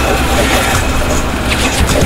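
Gunfire cracks in a video game.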